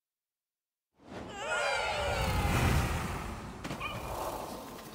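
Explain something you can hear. A bright game jingle plays as a level begins.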